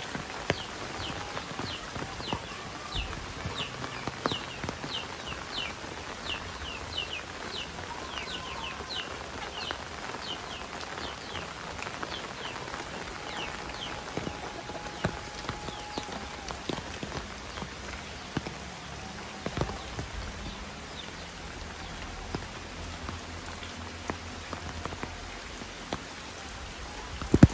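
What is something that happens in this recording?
Rain patters steadily on an umbrella outdoors.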